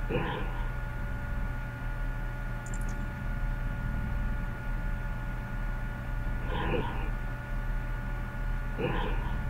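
A short electronic chime sounds as a block lights up.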